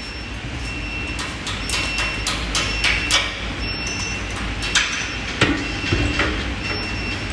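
Metal parts knock and clank as a frame is assembled.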